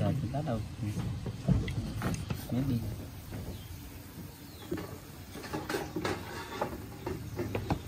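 A metal pot lid clinks as it is lifted.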